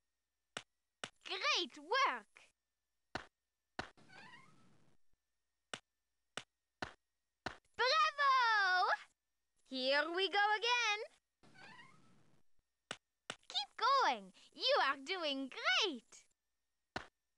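Short, bright electronic game jingles play in bursts as objects pop up.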